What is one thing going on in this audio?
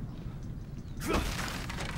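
An axe swishes through the air.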